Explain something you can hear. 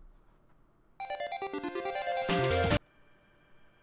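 A short, bright electronic video game jingle plays.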